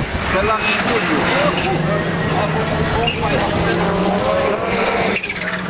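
A rally car engine roars loudly as the car powers around a dirt bend.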